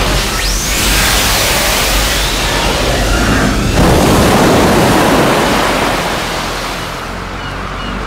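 Waves crash and roar heavily.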